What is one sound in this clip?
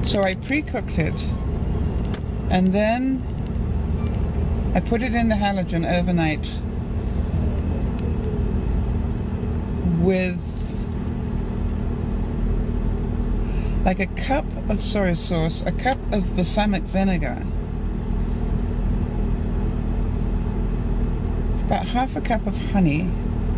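A car engine hums steadily with road noise.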